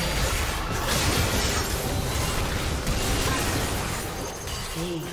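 Magic blasts and impacts crackle and boom in a fast fight.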